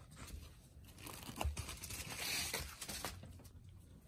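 Thin fabric rustles softly as it is handled.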